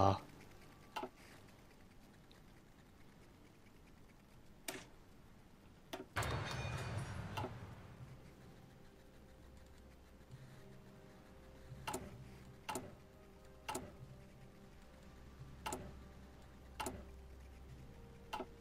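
Short clicks sound as game menus open and close.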